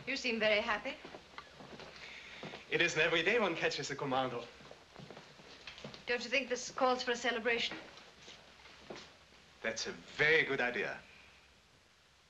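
A woman speaks calmly nearby, with an old, thin sound.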